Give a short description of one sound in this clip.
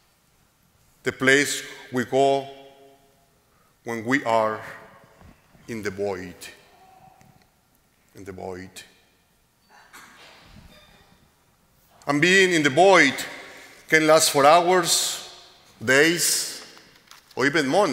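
A middle-aged man speaks calmly into a microphone, with pauses, in a large echoing hall.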